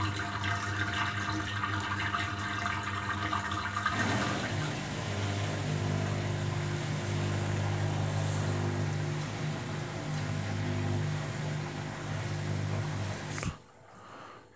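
A front-loading washing machine spins its drum at high speed with a steady hum, then goes quiet.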